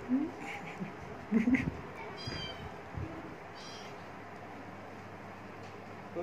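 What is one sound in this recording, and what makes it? A kitten mews softly.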